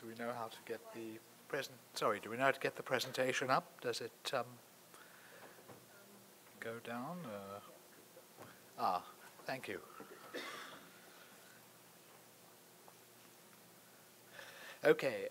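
An older man speaks steadily into a microphone, with pauses.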